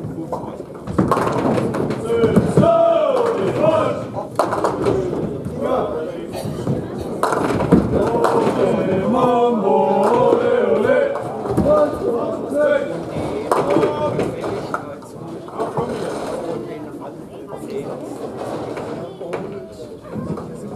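Pins clatter as balls strike them.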